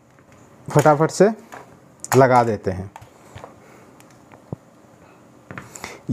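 A cable plug clicks into a socket.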